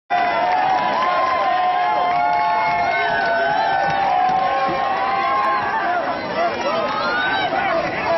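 A crowd shouts and cheers outdoors from the sidelines.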